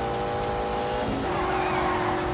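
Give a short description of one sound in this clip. A sports sedan engine shifts up a gear with a brief drop in pitch.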